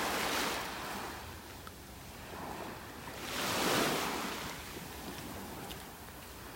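Small waves wash gently onto a beach and fizz as they draw back.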